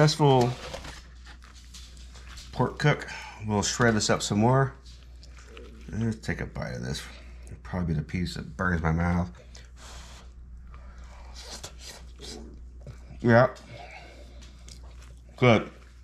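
Gloved hands pull apart soft cooked meat with quiet squelches.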